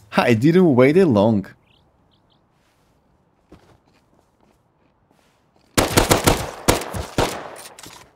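Footsteps crunch over grass and gravel.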